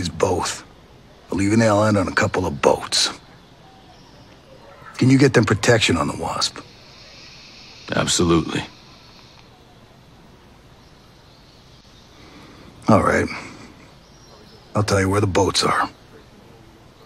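A man speaks calmly close to a microphone, in short bursts.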